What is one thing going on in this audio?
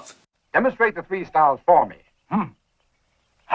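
A man speaks with a firm voice.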